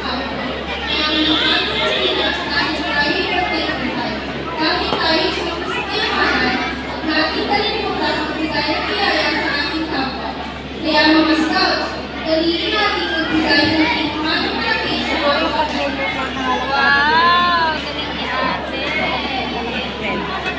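Many children chatter and shout at once in a large echoing hall.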